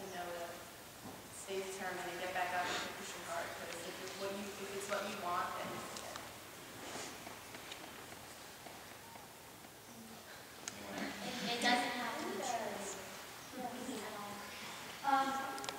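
A crowd of young women murmurs and chatters.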